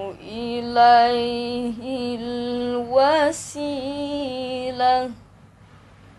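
A girl chants in a high, drawn-out melodic voice close to a microphone.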